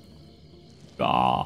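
A man speaks close to a microphone, loudly and with animation.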